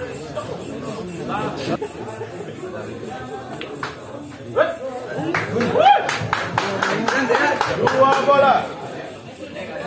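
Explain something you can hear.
A crowd of young men chatters and cheers with excitement.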